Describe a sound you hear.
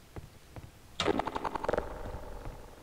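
A rifle clatters as it is swapped for another.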